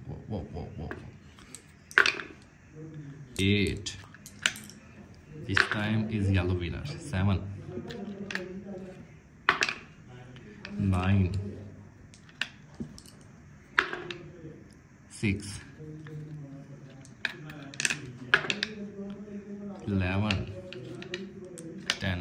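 Wooden tiles click as they are flipped down.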